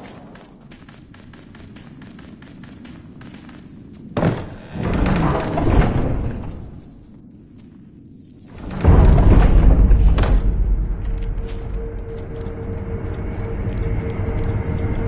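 Quick footsteps patter across a hard floor.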